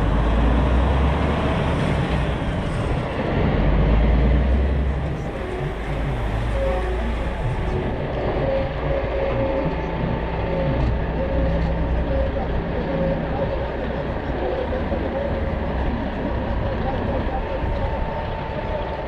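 A large truck engine rumbles steadily at low speed.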